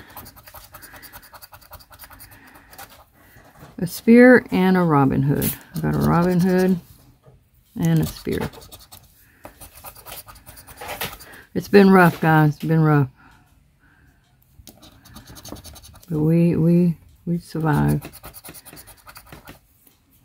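A plastic chip scrapes across a scratch card.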